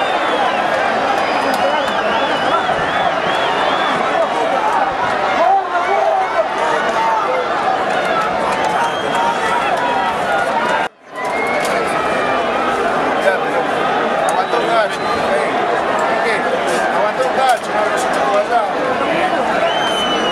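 A large stadium crowd chants and roars loudly outdoors.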